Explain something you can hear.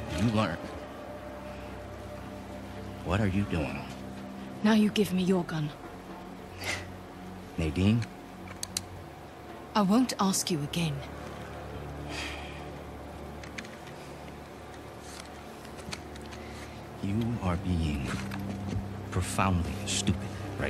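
A young woman talks quietly into a microphone.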